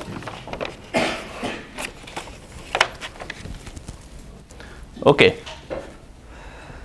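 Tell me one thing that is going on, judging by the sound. A man lectures aloud in a large room.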